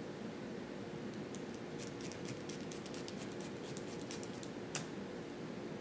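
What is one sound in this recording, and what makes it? A felting needle pokes softly and rapidly into wool.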